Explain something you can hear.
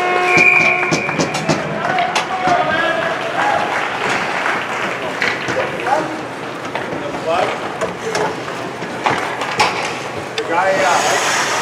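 Hockey sticks clatter on the ice.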